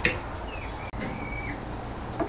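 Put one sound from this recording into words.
A wire whisk attachment clinks against a stand mixer.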